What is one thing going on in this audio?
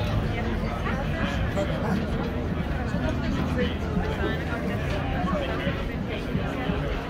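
A large crowd of men and women chatters all around.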